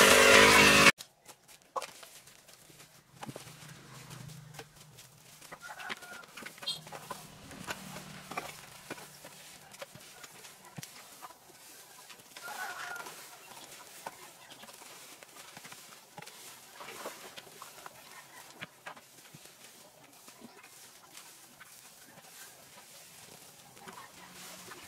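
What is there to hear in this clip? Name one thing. Rakes scrape and rustle through dry grass and leaves.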